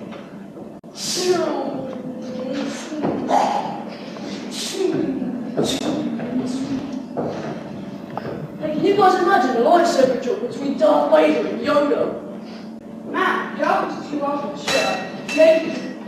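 Boys speak loudly, with animation, in a large echoing hall.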